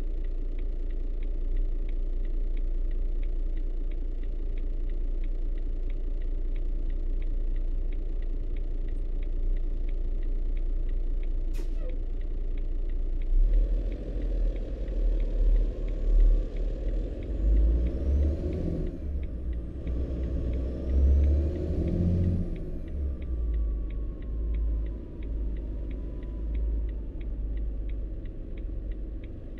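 A truck engine rumbles steadily and then revs up as the truck pulls away.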